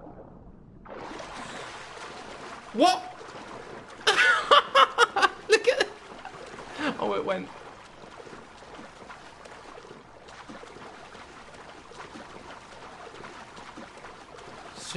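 Sea water splashes and washes as a swimmer strokes through waves.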